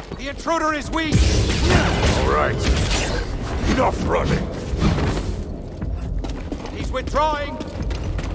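Blades clash and strike with sharp hits.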